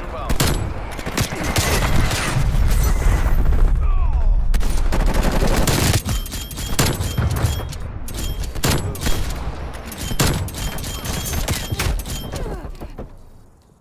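Sniper rifle shots crack loudly, one after another.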